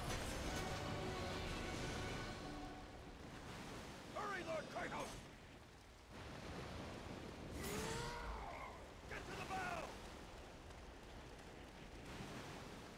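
Heavy rain and wind roar in a storm.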